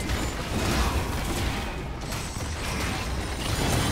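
A stone tower crumbles and explodes.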